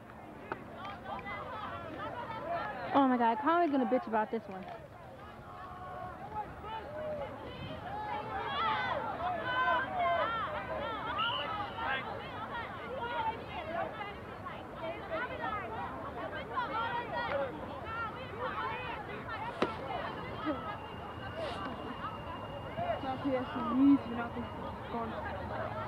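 Many voices of a crowd chatter and call out nearby outdoors.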